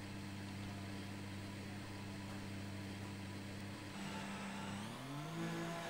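A racing car engine idles with a low steady hum.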